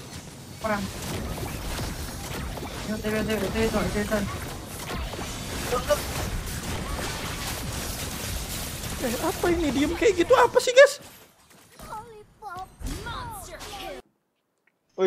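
Fast game battle effects crackle and boom.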